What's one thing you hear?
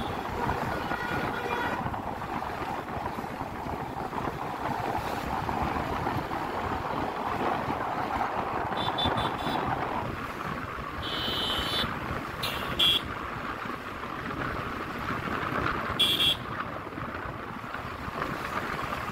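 A motorbike engine hums steadily while riding along.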